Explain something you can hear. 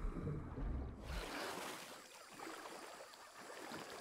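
Water splashes as someone wades through it.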